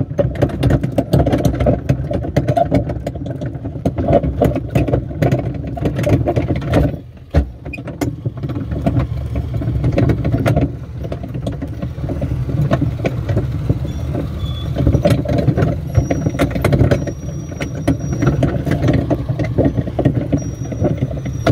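Small knocks and squeaks sound from a plastic slide.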